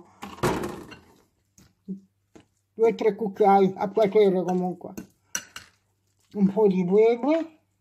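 A spoon scrapes and clinks against a glass bowl while stirring.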